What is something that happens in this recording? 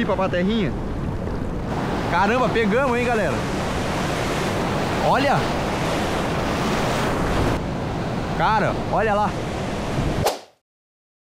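Waves churn and splash loudly close by.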